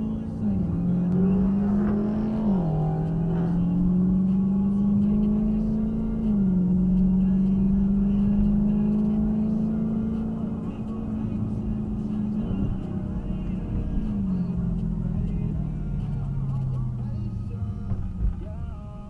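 A car engine hums steadily, its pitch dropping with each gear change.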